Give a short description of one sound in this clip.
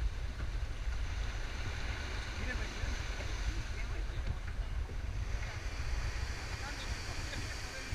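Waves lap and splash against a rock face.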